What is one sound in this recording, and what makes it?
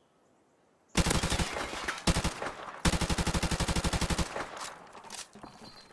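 A rifle fires rapid bursts close by.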